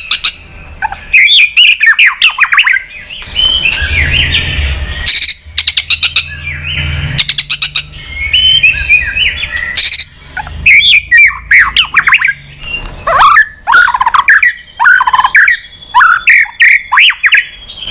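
A songbird sings loud, varied whistling phrases up close.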